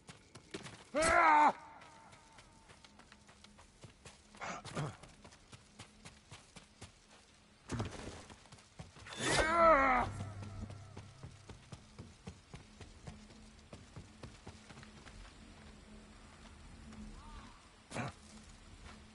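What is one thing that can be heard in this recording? A sword swishes and clashes in short bursts.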